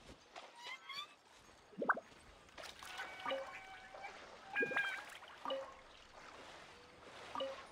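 Water splashes as a game character swims.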